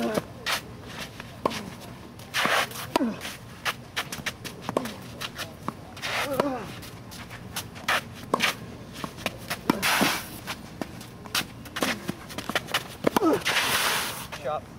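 Tennis balls pop off racquets in a steady rally outdoors.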